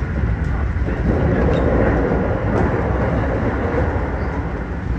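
Another train rushes past close by.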